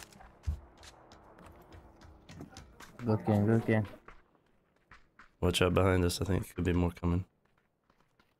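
Footsteps tread on dry grass and dirt.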